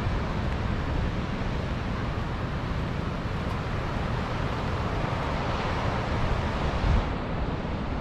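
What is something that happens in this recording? Waves wash steadily onto a beach nearby.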